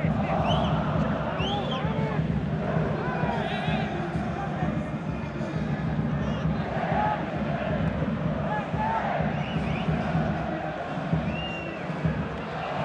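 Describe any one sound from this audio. Shrill whistles rise from the crowd now and then.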